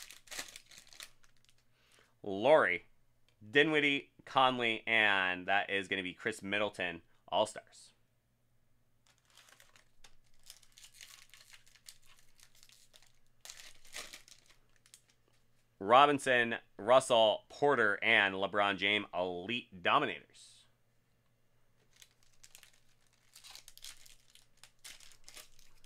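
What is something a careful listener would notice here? Foil card packs crinkle and tear as they are opened.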